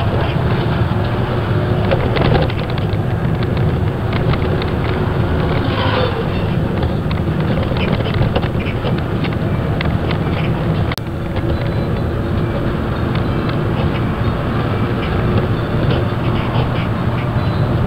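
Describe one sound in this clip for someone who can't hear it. A vehicle's engine rumbles steadily from inside as it drives along a road.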